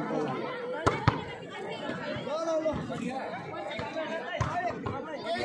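A ball is kicked with a thud.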